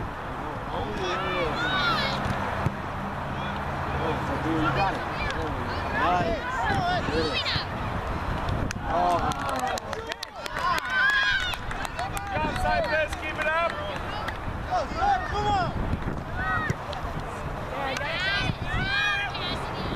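Young girls shout and call out to each other across an open field.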